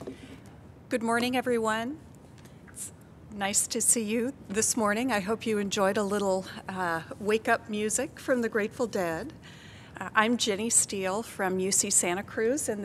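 A middle-aged woman speaks calmly and warmly into a microphone.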